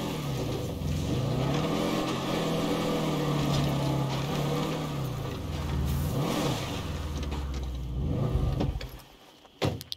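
A truck engine rumbles and revs as the vehicle drives over rough ground.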